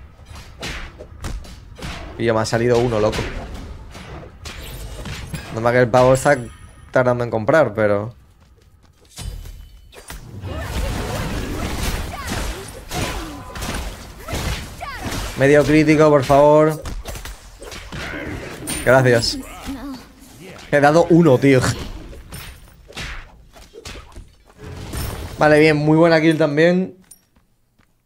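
Game weapons clash and spells whoosh.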